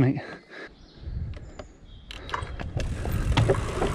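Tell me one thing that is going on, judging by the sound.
Bicycle tyres clatter over wooden planks.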